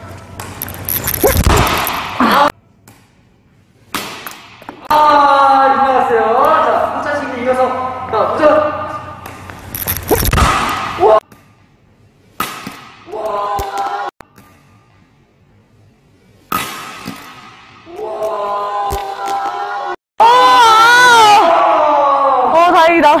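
A racket strikes a shuttlecock with sharp pops.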